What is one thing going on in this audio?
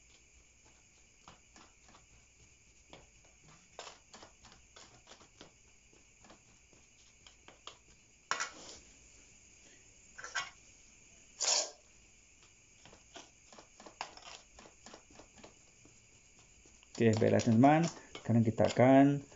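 A metal spoon scrapes and scoops soil in a pot.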